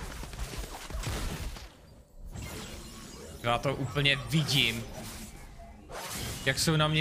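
Fantasy game spells whoosh and clash.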